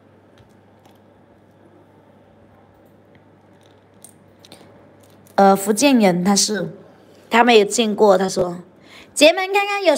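Small stone pendants clink softly as a hand picks through them.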